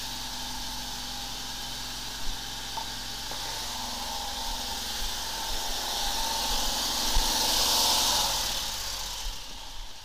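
An engine hums steadily nearby.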